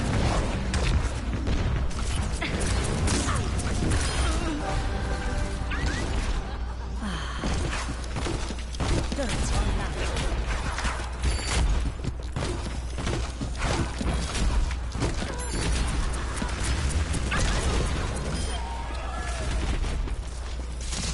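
Video game weapons fire in rapid bursts.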